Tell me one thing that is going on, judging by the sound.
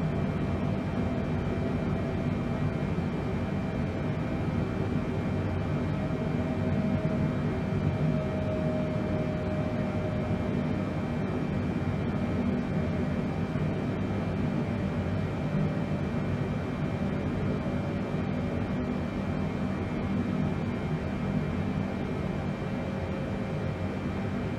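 Jet engines drone steadily in flight with a low rumble of air.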